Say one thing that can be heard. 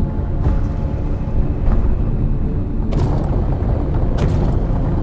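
A submarine engine rumbles low and steady.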